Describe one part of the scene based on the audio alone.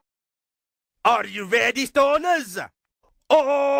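A man speaks with animation, heard through a loudspeaker.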